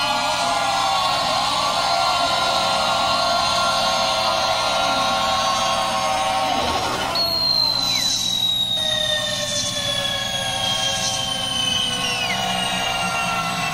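A man sings loudly into a microphone over a loudspeaker system.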